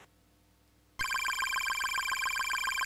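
Retro game music plays in bright, steady bleeping tones.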